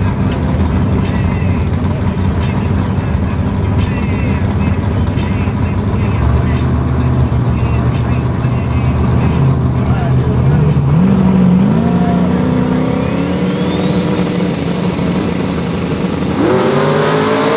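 Race car engines rumble and idle loudly.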